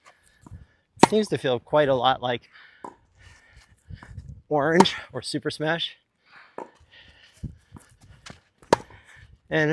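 A tennis ball pops off a racket.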